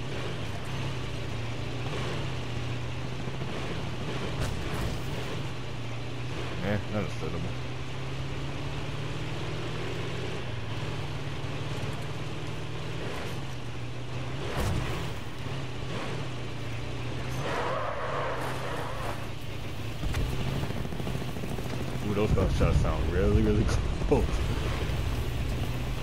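A vehicle engine hums steadily as it drives along.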